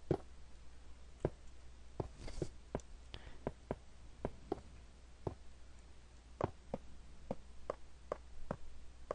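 Footsteps tap on stone at an uneven pace.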